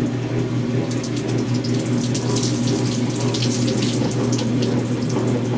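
Water splashes and drips into a tub.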